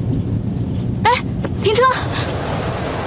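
A young woman laughs and talks cheerfully close by.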